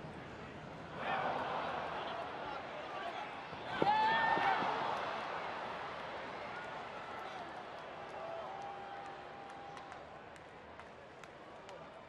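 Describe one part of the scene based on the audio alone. A stadium crowd cheers loudly, then slowly quiets.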